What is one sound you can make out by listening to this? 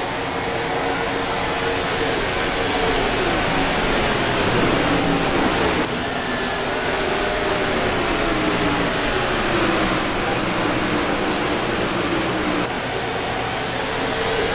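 Race car engines roar loudly at high speed.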